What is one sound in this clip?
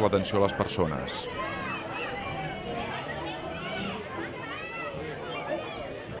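Children chatter and shout nearby.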